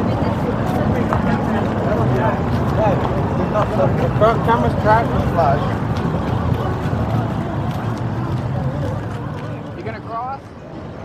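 A crowd chatters outdoors on a busy street.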